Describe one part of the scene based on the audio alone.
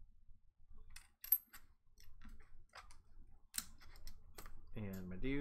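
Game pieces click and tap on a table.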